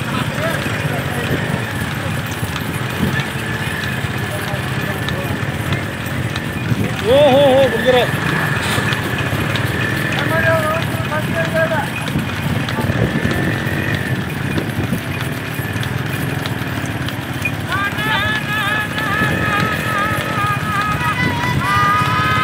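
Motorcycle engines rumble steadily close by.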